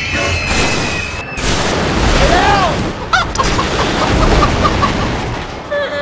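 Metal crashes and crunches in a heavy collision.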